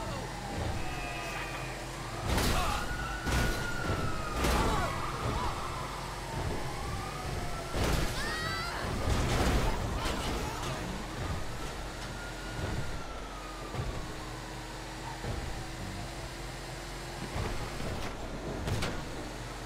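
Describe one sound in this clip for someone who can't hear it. A heavy truck engine rumbles steadily as the truck drives.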